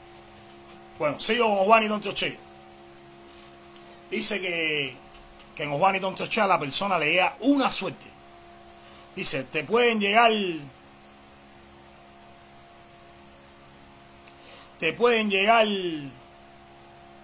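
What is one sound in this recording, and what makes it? A man speaks close to the microphone with animation, in short bursts.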